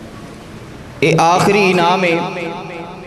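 A man speaks loudly and with feeling through a microphone and loudspeakers in an echoing room.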